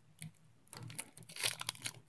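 A foil card pack crinkles as it is handled.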